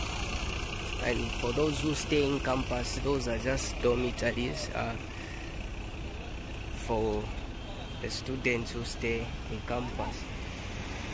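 A man speaks casually close by, outdoors.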